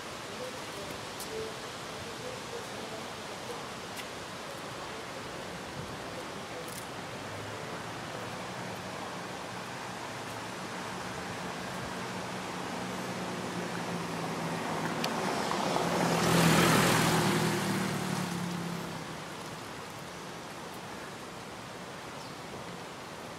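Footsteps scuff and tap on concrete steps outdoors.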